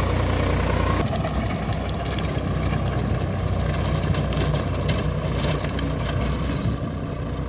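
A rotary tiller churns and crunches through dry soil.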